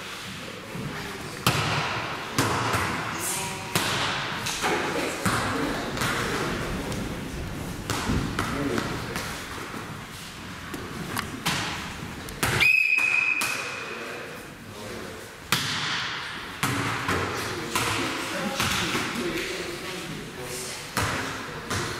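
Young people talk and call out in a large echoing hall.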